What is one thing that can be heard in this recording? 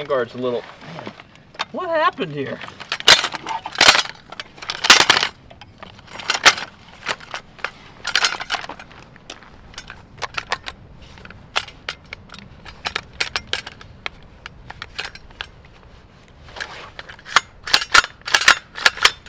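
Metal rifle parts click and clack as they are handled.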